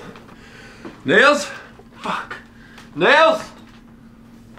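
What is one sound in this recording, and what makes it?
A young man groans and cries out in pain close by.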